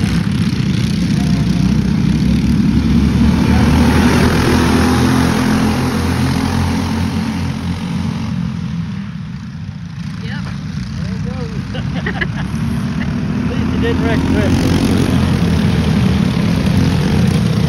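Go-kart engines buzz loudly as the karts race past.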